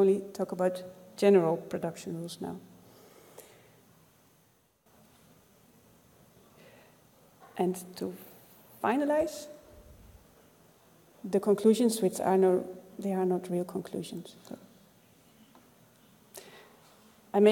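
A woman speaks calmly into a microphone, with pauses.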